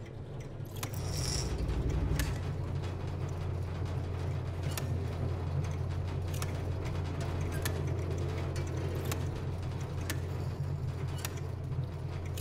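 A machine starts up and hums low and steadily.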